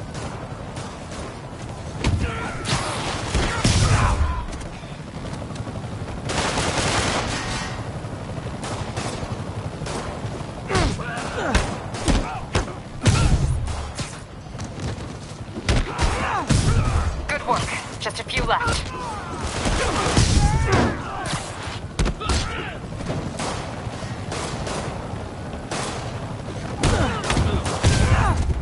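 Punches and kicks land with heavy thuds during a brawl.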